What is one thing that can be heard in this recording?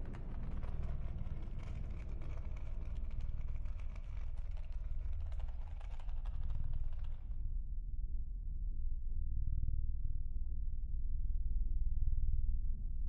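A plastic pill bottle rolls slowly across a rough surface.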